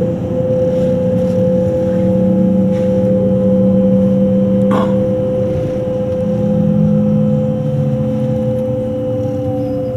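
Train wheels rumble on the rails at speed, heard from inside the carriage.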